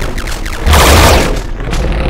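A video game tank's cannon fires.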